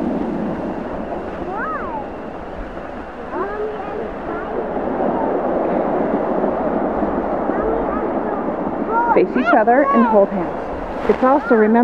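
Waves wash onto a pebbly shore.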